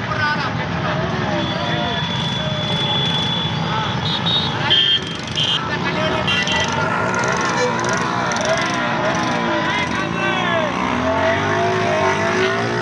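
Many motorcycle engines rumble steadily close by.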